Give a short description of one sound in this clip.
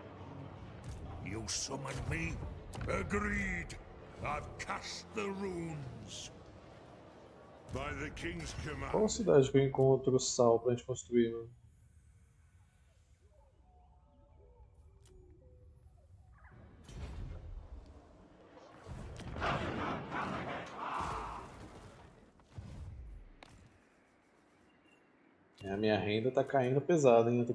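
A young man talks with animation into a close microphone, pausing now and then.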